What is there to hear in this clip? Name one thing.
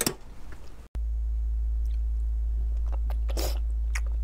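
A woman bites and chews soft food with wet smacking sounds, close up.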